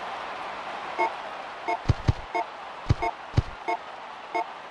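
Short electronic menu beeps sound in quick succession.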